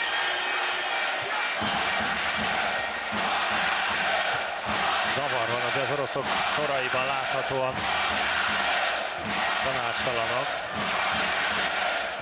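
A large crowd cheers and chants loudly in an echoing arena.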